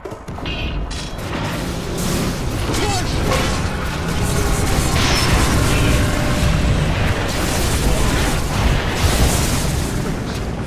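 Magic spells blast and crackle with clashing hits in a loud battle.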